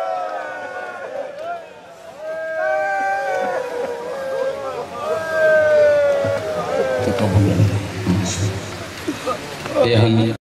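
A crowd of men beat their chests in rhythm.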